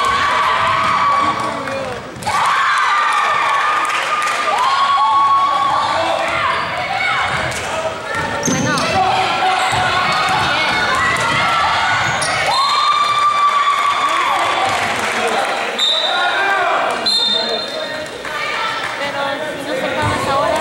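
A crowd murmurs and chatters in the stands.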